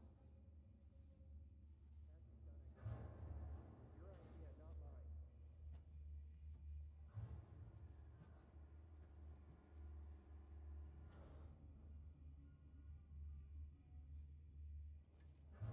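A low machine hum drones steadily.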